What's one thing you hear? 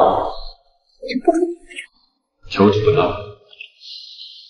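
A young man speaks calmly up close.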